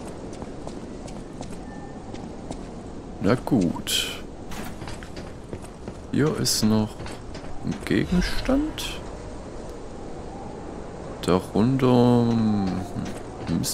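Footsteps tread across a hard rooftop.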